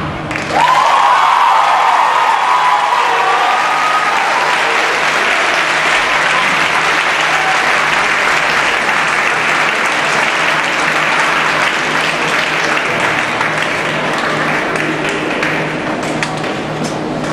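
A large audience cheers and applauds loudly in a big hall.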